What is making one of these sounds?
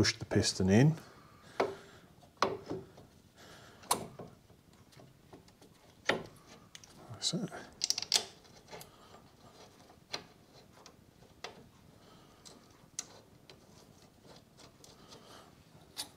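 Metal parts click and clank.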